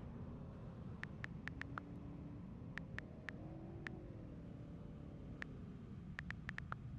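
Keyboard keys tick rapidly as text is typed.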